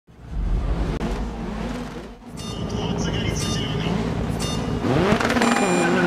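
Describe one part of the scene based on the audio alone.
Racing car engines rev and whine loudly.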